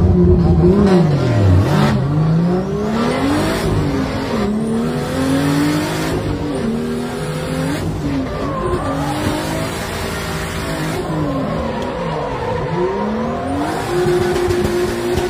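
A car engine revs hard, rising and falling in pitch, heard from inside the cabin.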